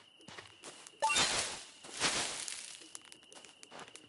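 Leaves of a bush rustle as berries are picked.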